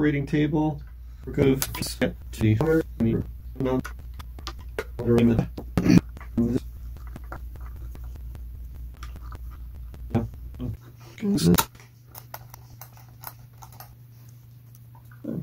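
Small metal parts click and tap against each other.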